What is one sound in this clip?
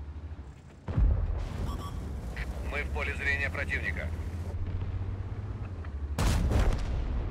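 A tank cannon fires with loud, booming blasts.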